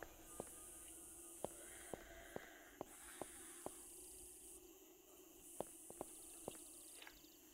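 Footsteps crunch steadily on dirt.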